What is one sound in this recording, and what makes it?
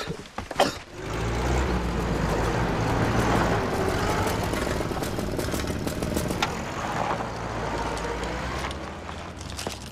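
An old truck engine rumbles and drives past on a gravel road.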